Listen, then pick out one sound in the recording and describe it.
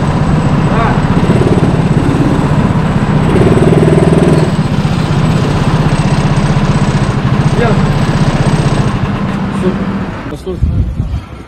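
A go-kart engine drones loudly close by.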